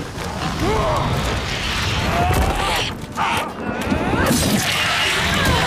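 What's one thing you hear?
A large creature screeches and squawks loudly.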